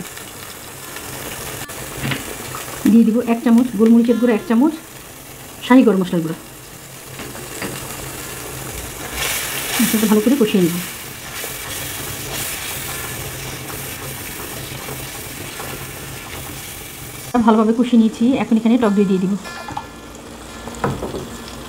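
Sauce bubbles and sizzles in a hot pan.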